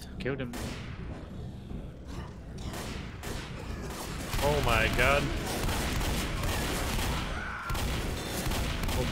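Pistol shots fire in quick bursts.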